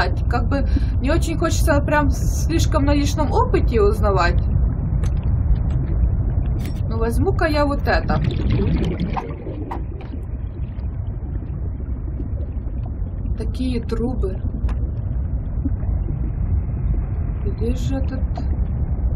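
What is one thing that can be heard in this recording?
A young woman talks calmly into a close microphone.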